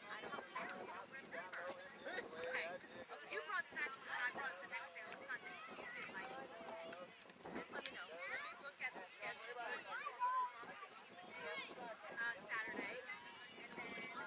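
Young girls chatter and shout excitedly outdoors.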